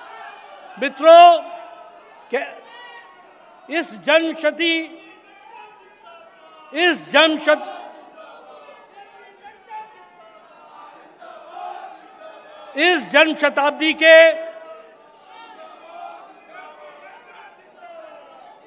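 An elderly man speaks forcefully into a microphone through loudspeakers in a large hall.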